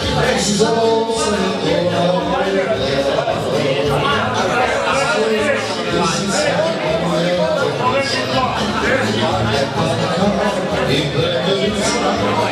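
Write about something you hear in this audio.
Dishes and cutlery clink on a table.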